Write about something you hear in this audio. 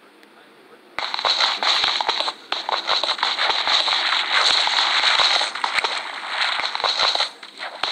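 A pickaxe chips at stone in quick, repeated knocks.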